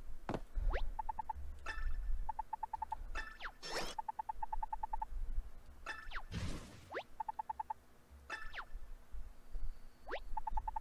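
Short, rapid electronic blips chatter in bursts.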